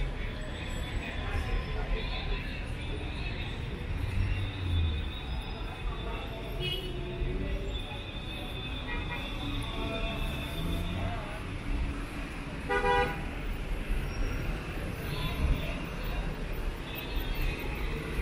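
Car engines hum as traffic moves slowly along a busy street.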